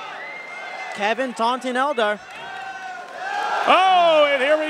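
A man in the crowd shouts loudly.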